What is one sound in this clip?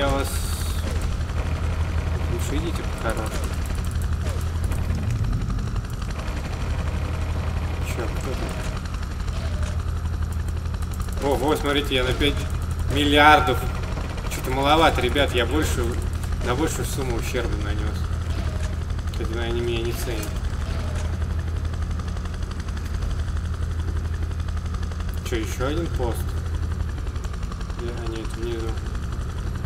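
A helicopter's rotor drones steadily and low.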